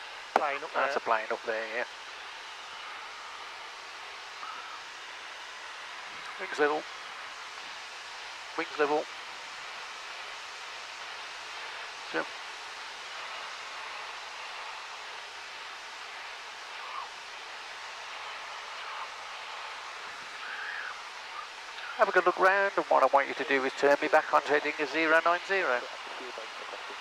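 A man speaks over a headset intercom in short bursts.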